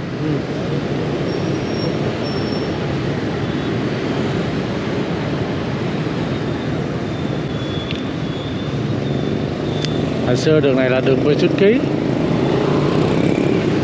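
Motor scooters hum and buzz past in city street traffic.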